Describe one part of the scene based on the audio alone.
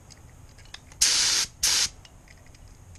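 A spray gun hisses in two short bursts.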